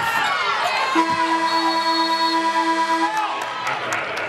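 A buzzer sounds with a steady tone for about two seconds.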